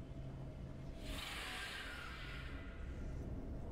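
A video game alert rings out with a rushing whoosh.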